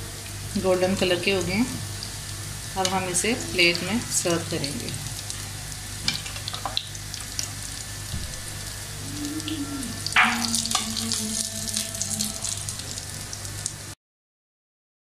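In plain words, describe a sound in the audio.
Hot oil sizzles steadily in a frying pan.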